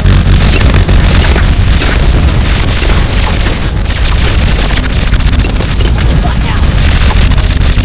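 Game weapons fire in rapid, dense bursts of pops and blasts.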